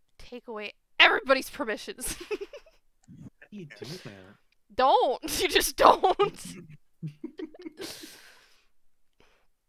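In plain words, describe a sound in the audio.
A young woman laughs into a close microphone.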